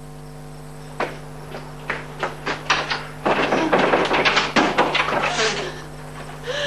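A woman's footsteps tap quickly on a hard floor.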